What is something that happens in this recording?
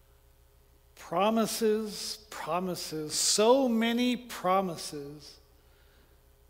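A middle-aged man reads aloud calmly through a microphone.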